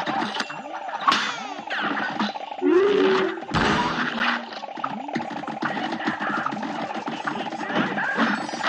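Bright impact hits sparkle and burst in quick succession.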